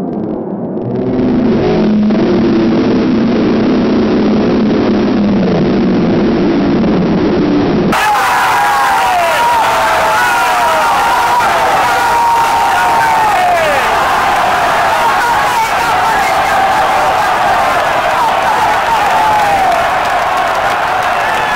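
A large stadium crowd sings and chants loudly in the open air.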